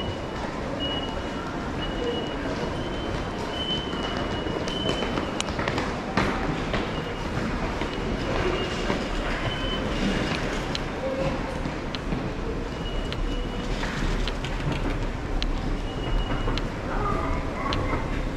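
Footsteps echo in a large indoor hall.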